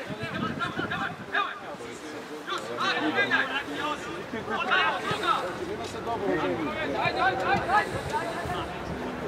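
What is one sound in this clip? Young men shout to one another across an open outdoor field.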